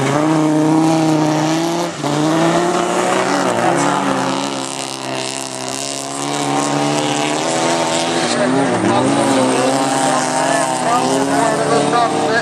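A car engine revs hard and whines, rising and falling as the car slides through a bend.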